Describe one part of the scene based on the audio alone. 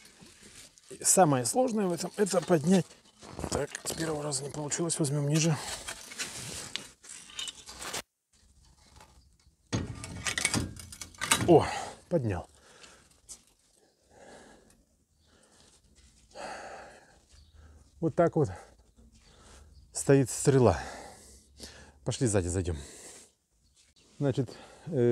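A middle-aged man talks calmly nearby, outdoors.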